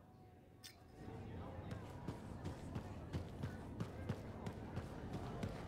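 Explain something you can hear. Footsteps tap steadily on a stone floor.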